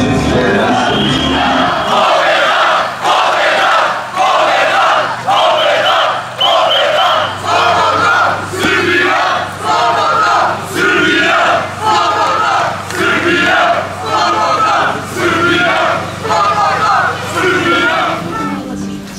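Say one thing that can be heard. A large crowd chants loudly in rhythm outdoors.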